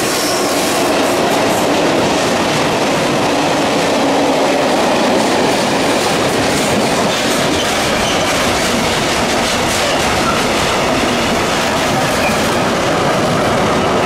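A freight train hauled by an electric locomotive rushes past at speed.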